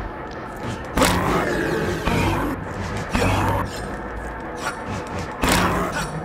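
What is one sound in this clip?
Sharp magical whooshes burst out again and again.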